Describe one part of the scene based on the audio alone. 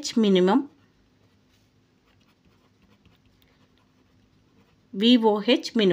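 A pen scratches softly across paper.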